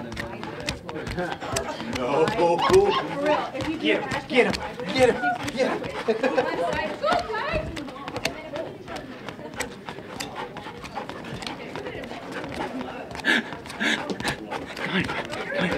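A dog pants close by.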